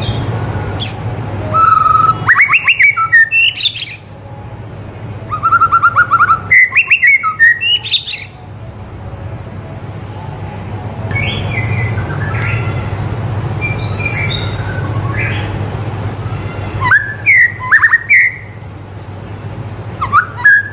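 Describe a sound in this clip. A white-rumped shama sings loud, varied phrases of whistles and rapid trills.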